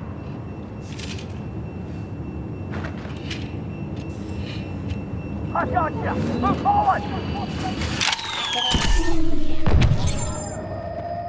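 Laser blasters fire in short bursts.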